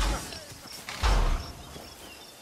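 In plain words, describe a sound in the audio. A blade strikes a body with a heavy thud.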